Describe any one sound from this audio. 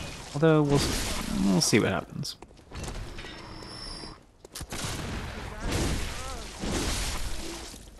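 A blade slashes and strikes flesh with a wet thud.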